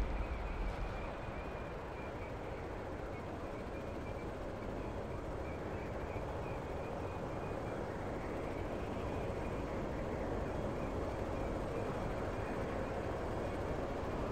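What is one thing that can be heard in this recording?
Leaves and branches rustle as someone pushes through bushes.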